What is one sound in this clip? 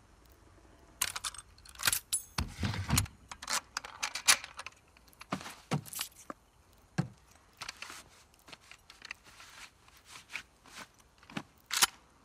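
Metal parts of a shotgun click and clack as they are handled and fitted.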